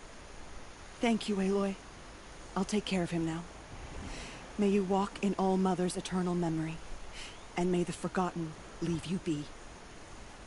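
A woman speaks calmly and warmly, close by.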